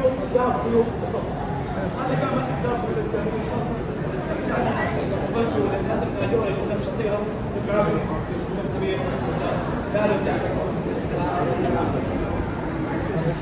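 A crowd of men and women murmur and chat nearby in an echoing hall.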